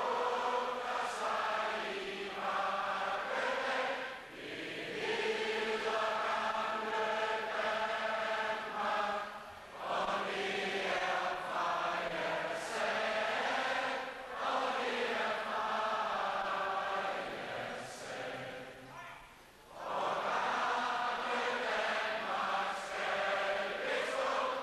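Young women sing an anthem together in a large echoing hall.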